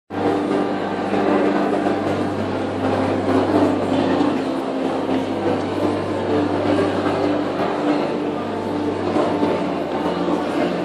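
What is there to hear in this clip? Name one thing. A crowd of people murmurs and talks close by.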